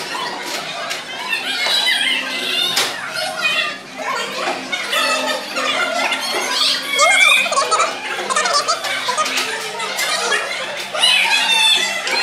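A young woman talks to children nearby.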